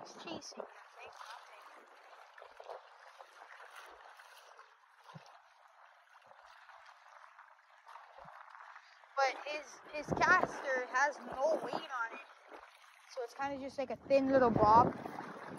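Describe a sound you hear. Water laps and ripples gently.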